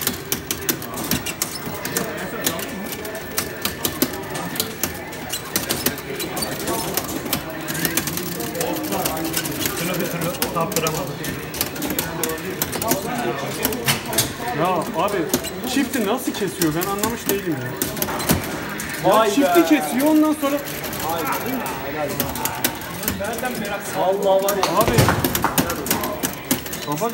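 Buttons on an arcade machine click and clack rapidly.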